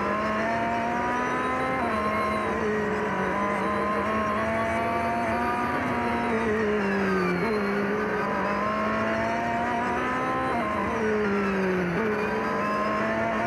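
A racing car engine roars loudly throughout, rising in pitch and dropping sharply at each gear change.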